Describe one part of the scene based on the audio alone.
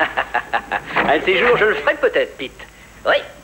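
A middle-aged man laughs heartily nearby.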